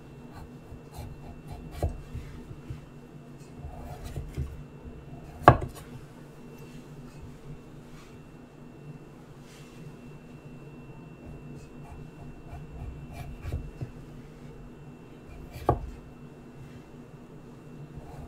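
A knife taps and chops on a wooden board.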